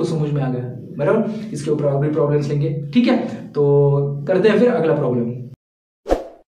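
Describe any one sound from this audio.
A man speaks to the listener calmly and clearly, close to a microphone.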